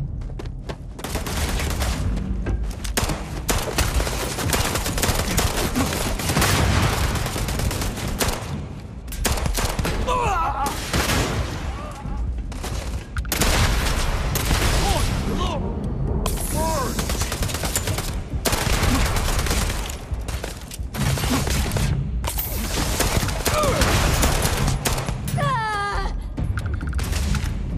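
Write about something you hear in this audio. Guns fire in rapid bursts, loud and close.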